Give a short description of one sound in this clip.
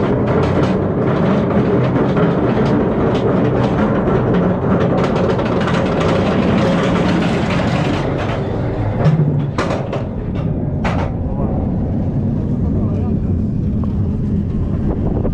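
A roller coaster rattles and roars loudly along its track.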